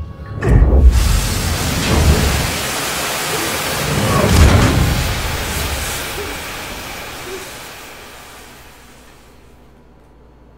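Gas rushes out with a loud roaring hiss and slowly fades away.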